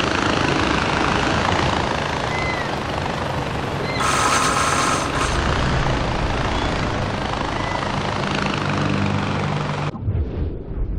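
A pulley whirs and rushes steadily along a zip line cable.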